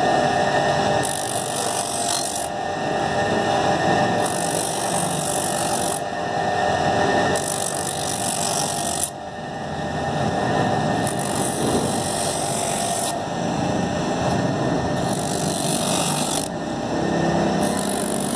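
A foam sole hisses against a spinning grinding wheel in repeated bursts.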